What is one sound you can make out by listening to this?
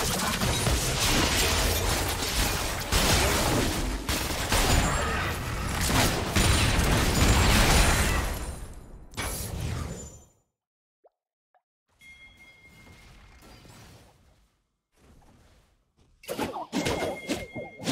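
Spells and blows from a video game battle clash and burst loudly.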